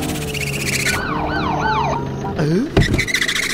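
A police siren wails close by.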